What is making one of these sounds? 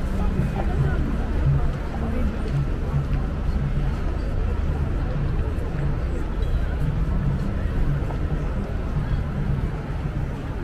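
A crowd of people talks in a low murmur outdoors.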